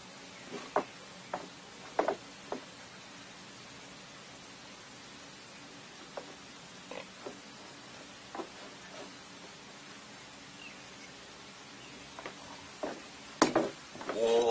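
A metal chair clatters and knocks as it is swung about.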